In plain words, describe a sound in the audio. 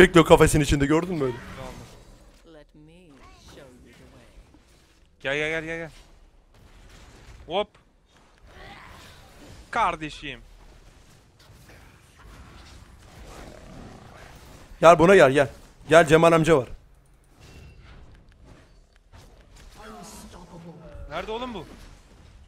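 A young man talks excitedly, close to a microphone.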